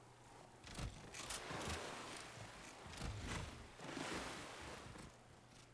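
Water splashes as someone swims.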